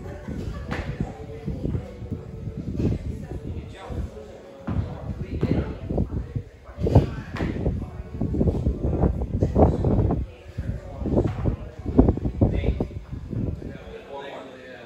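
A dumbbell thuds against a rubber floor again and again.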